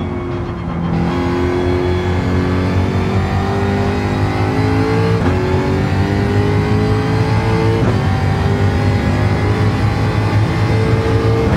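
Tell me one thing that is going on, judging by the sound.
A racing car engine revs high and rises in pitch as the car speeds up through the gears.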